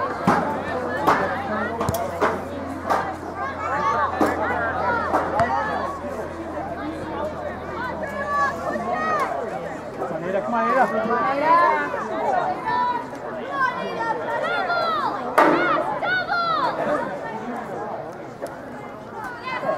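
Girls shout and call out to each other across an open field.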